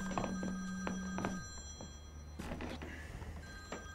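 A mobile phone buzzes against a wooden desk.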